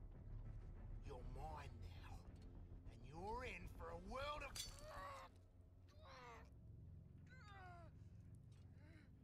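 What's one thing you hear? A man speaks in a low, menacing voice up close.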